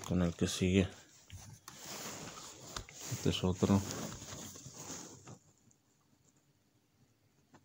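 Plastic disc cases click and rattle as a hand handles them.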